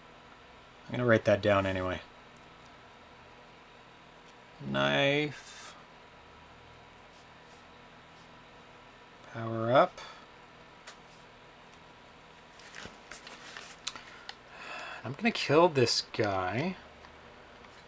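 A man speaks in short bursts into a close microphone, with pauses between.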